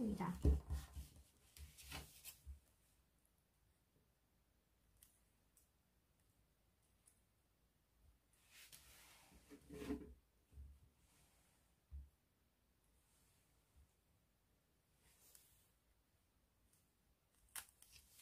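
Paper crinkles softly as hands fold it.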